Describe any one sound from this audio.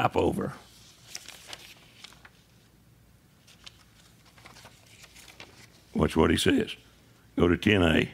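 Paper pages rustle as an older man turns them.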